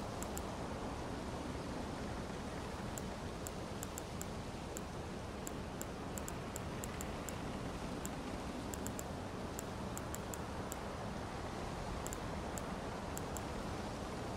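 Soft menu clicks tick quickly as a selection moves through a list.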